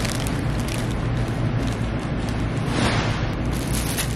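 Paper sheets rustle as they are handled.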